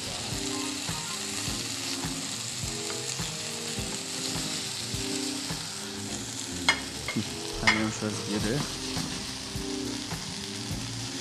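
Vegetables sizzle in a hot pan.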